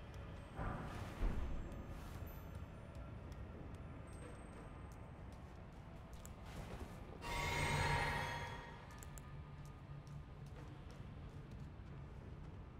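Footsteps tap on wooden boards and stone steps.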